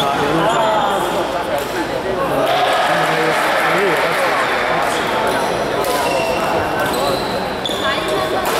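Many adults chatter in a large echoing hall.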